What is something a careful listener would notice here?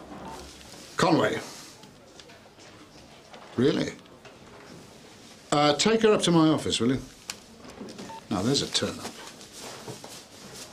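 A man speaks quietly into a phone.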